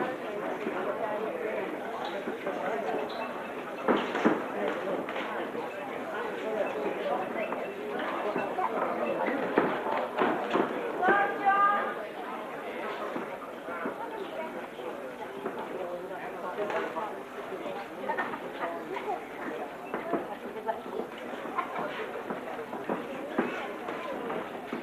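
A crowd chatters and shouts throughout.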